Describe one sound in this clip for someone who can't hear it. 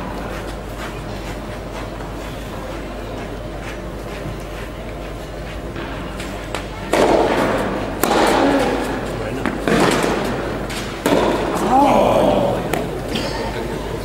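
A tennis ball is struck back and forth with rackets.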